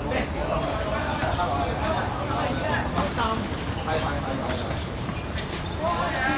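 Feet pound and shuffle on a hard court.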